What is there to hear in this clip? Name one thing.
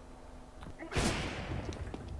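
A gunshot cracks close by.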